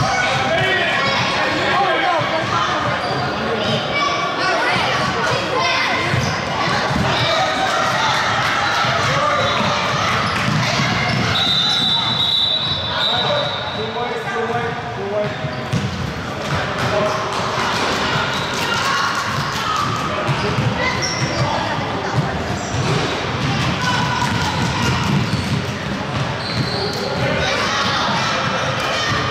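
Children shout and call out throughout a large echoing hall.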